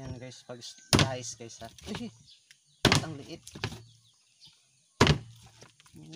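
A machete chops through meat with sharp thuds.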